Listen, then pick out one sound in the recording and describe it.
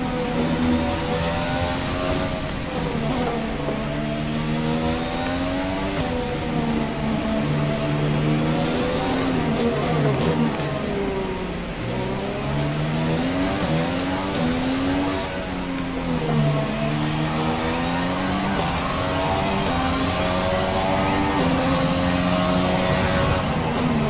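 A racing car engine revs high and shifts gears as the car speeds along.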